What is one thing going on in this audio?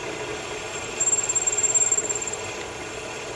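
A metal wheel squeals briefly as it is pressed.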